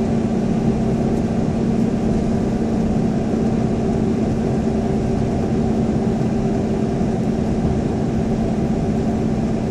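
Tyres roar steadily on the road, echoing in a tunnel.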